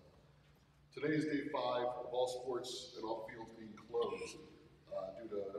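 A man speaks steadily into a microphone in a large room.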